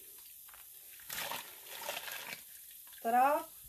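Wet yarn splashes and drips into a pot of water.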